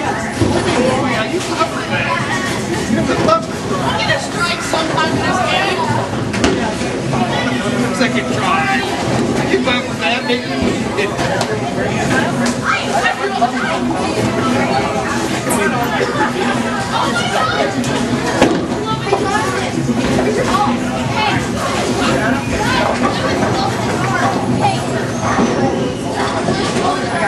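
Bowling pins clatter as a ball strikes them.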